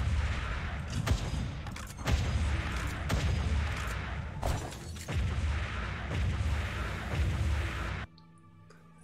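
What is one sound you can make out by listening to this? Game gunfire rattles in rapid bursts.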